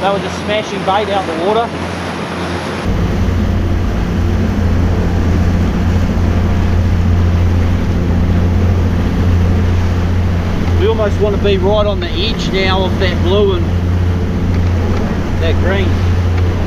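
A man talks nearby over the engine noise.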